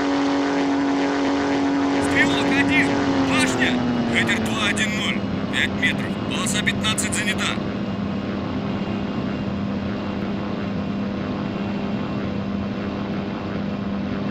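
A propeller aircraft engine drones loudly, then its pitch sinks as it throttles back.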